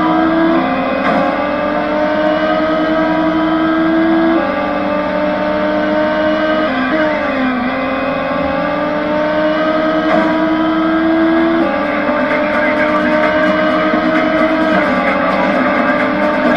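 A racing car engine revs high and shifts through gears.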